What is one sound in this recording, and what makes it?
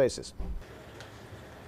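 Keys clatter as a man types on a laptop keyboard.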